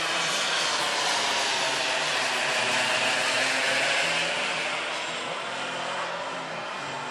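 A jet airliner roars overhead and slowly fades into the distance.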